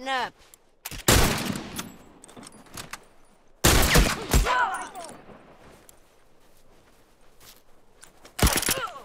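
Loud gunshots fire and echo.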